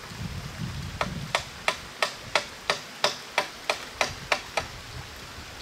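Wood knocks sharply in a quick, steady rhythm outdoors.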